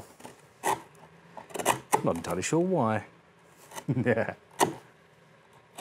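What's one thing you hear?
A chisel cuts into wood with short scraping strokes.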